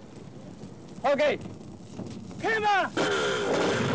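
A middle-aged man shouts loudly.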